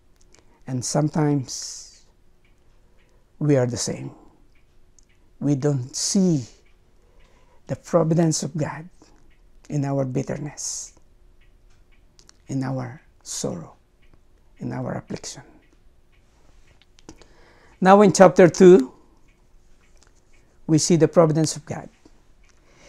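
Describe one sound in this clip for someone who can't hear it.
An older man speaks calmly and slowly into a close microphone, with pauses.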